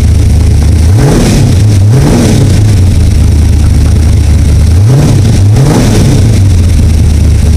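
An engine revs up sharply and falls back, twice.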